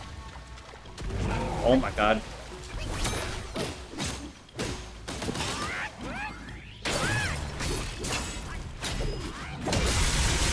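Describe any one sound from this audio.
Heavy blows strike a large creature in a fight.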